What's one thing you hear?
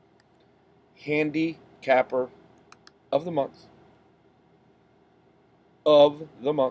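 A middle-aged man speaks to a microphone close by in short, animated bursts.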